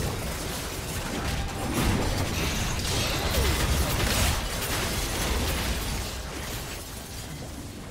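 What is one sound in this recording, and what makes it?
Magic spells blast and crackle.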